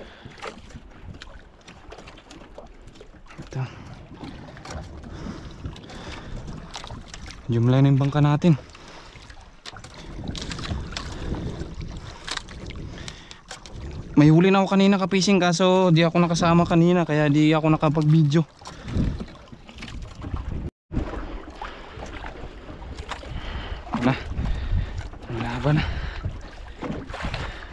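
Waves splash against a small boat's outrigger.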